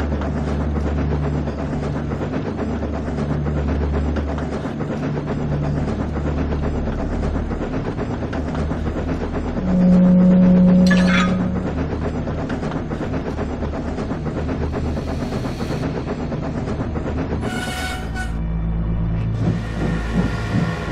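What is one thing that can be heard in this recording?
A steam engine chuffs and rumbles steadily.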